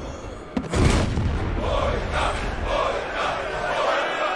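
A crowd of men shouts and cheers loudly.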